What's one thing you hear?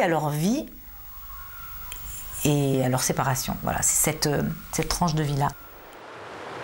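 A middle-aged woman speaks calmly and with animation, close to a microphone.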